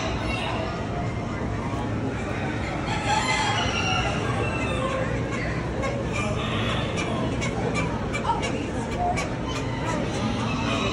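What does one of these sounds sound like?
Many birds chirp and flutter in a large echoing hall.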